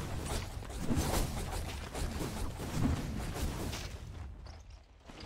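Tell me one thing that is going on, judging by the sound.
Fantasy battle effects clash and crackle loudly.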